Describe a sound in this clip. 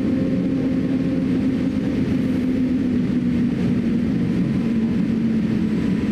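Jet engines roar steadily, heard from inside an aircraft cabin.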